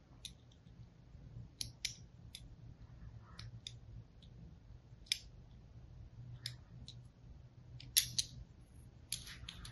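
A blade scrapes and crackles against a bar of dry soap in short strokes.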